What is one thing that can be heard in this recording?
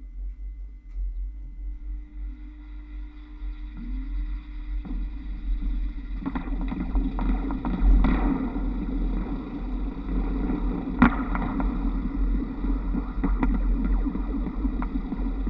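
Wind rumbles against the roof.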